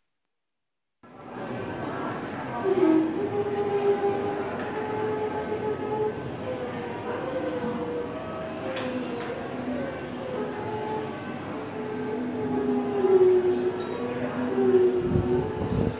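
Bowed fiddles play a slow, winding melody together.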